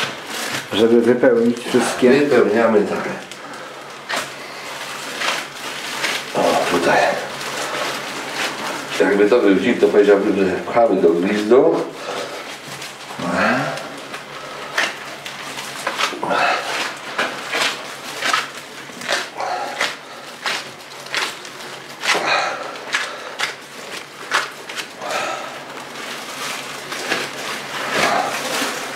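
Gloved hands squelch and pat wet minced meat.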